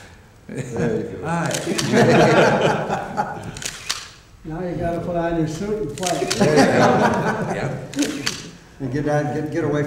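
Several men talk and laugh together nearby.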